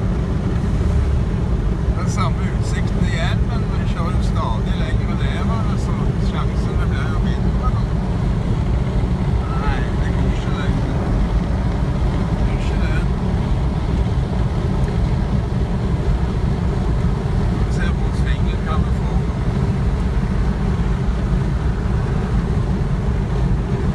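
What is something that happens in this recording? A car hums and rumbles steadily as it drives along a highway.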